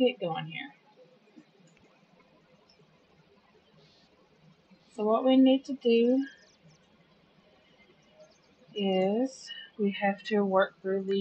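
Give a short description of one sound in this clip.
A young woman talks casually into a microphone, in short bursts.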